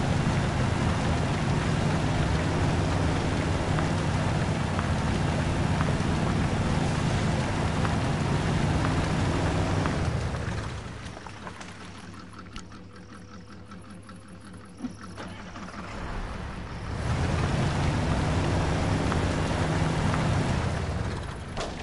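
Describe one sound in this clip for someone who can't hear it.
A heavy truck engine roars loudly.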